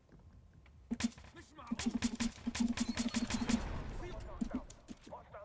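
Thuds and scuffles sound briefly during a short struggle.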